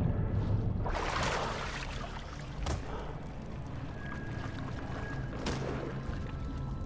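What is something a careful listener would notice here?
Water splashes as a man wades through it.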